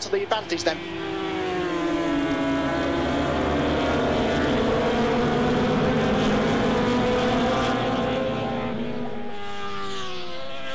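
Motorcycle engines roar at high revs as a pack races past.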